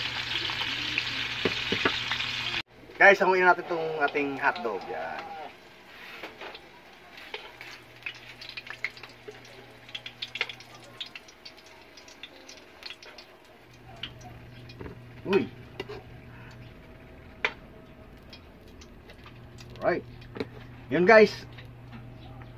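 Sausages sizzle in hot oil.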